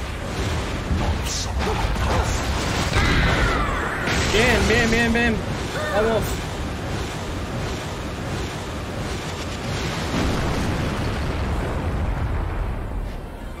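Loud game battle noise rumbles and crashes throughout.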